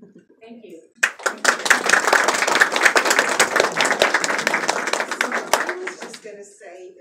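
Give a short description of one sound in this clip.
An audience claps and applauds in a room.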